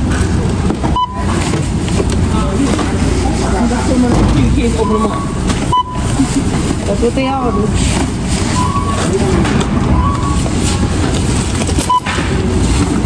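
A checkout scanner beeps now and then.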